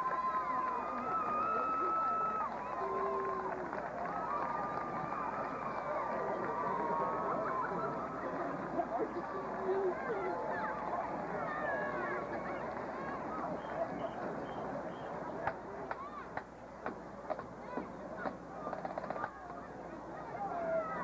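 A marching band with brass plays outdoors, heard from the stands.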